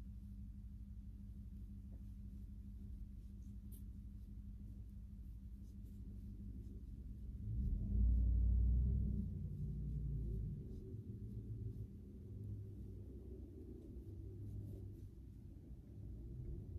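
Yarn rustles softly as a crochet hook works it.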